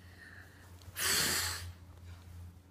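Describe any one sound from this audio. A young girl blows out a candle with a short puff.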